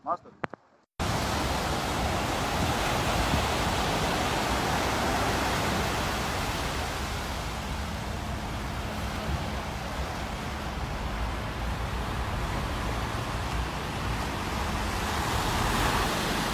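Waves wash and break onto a shore.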